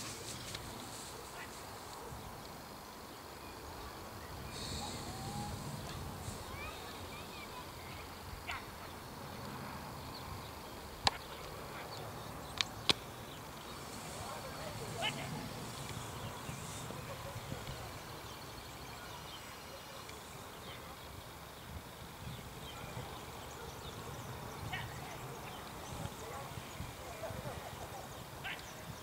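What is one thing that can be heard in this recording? Light wind rumbles steadily outdoors.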